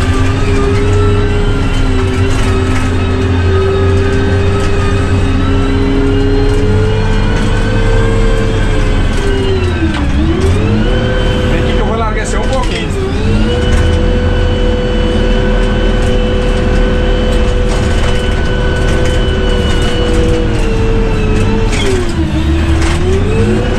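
A heavy diesel engine rumbles close by, its pitch dipping briefly now and then.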